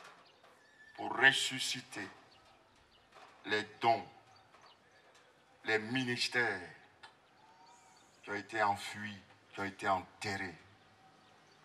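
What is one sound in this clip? A man preaches with animation through a microphone and loudspeakers, in short bursts.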